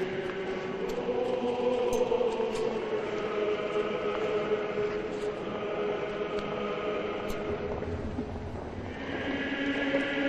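A man chants slowly in a steady voice, echoing in a large hall.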